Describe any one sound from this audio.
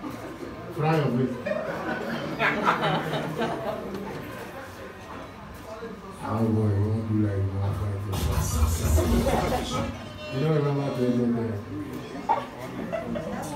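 A young man speaks through a microphone over loudspeakers with animation.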